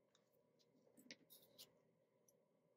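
Paper bills rustle softly as they are handled.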